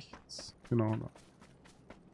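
A man speaks briefly and casually into a microphone.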